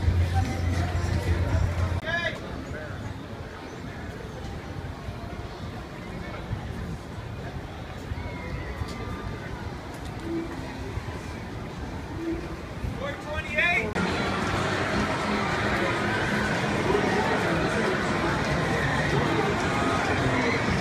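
A crowd chatters and murmurs outdoors.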